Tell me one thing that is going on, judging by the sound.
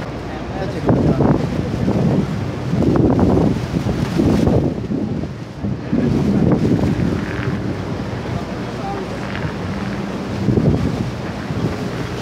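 Wind blusters loudly against the microphone outdoors.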